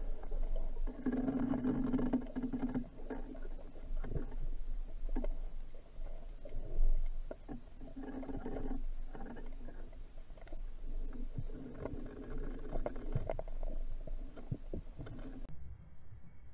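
Air bubbles gurgle and rumble underwater as a diver breathes out.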